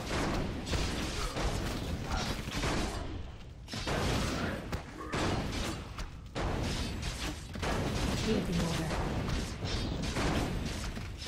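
Swords clash and clang in a rapid battle.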